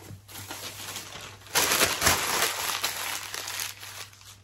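Paper rustles and crinkles.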